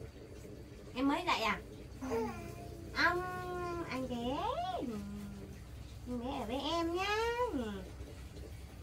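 A young woman speaks playfully in a high, sing-song voice close by.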